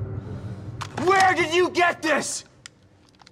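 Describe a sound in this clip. A man shouts angrily, close by.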